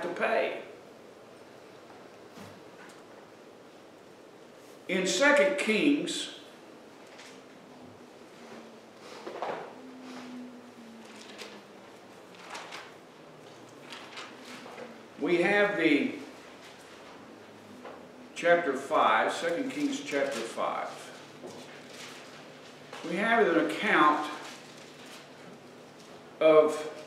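An elderly man speaks in bursts with pauses, heard in a room with some echo.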